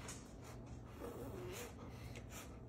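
A man hums with pleasure while eating.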